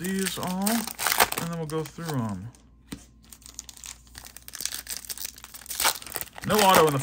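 A foil wrapper crinkles and tears close by.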